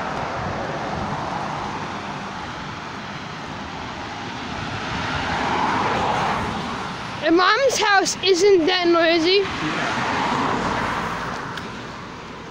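Cars swoosh past close by on a road, one after another.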